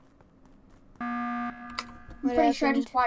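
A loud electronic alarm blares briefly.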